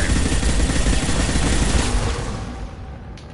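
A loud burst of energy crackles and roars, then fades.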